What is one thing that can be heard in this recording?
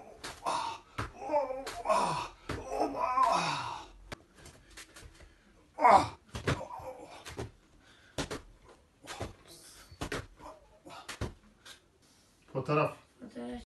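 A man talks with animation, close by.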